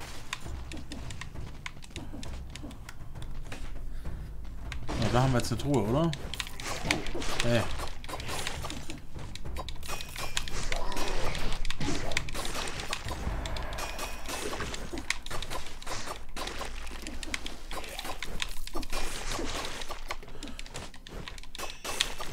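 Sword slashes and hits land with sharp, rapid impacts.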